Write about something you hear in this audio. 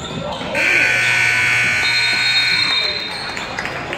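A scoreboard buzzer blares.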